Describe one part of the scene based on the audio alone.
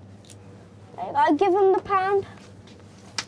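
A young boy speaks nearby in a high voice.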